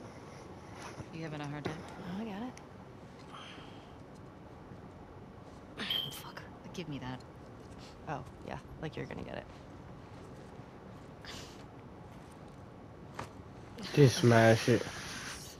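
A young woman speaks softly and playfully.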